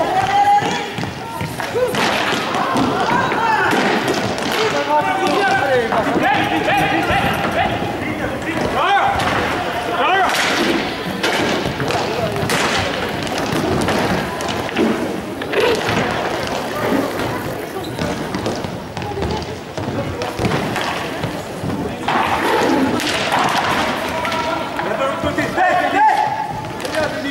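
Young players and spectators shout and call out in a large echoing hall.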